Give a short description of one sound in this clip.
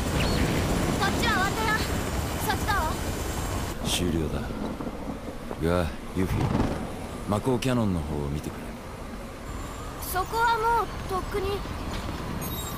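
A young woman speaks calmly into a phone, close by.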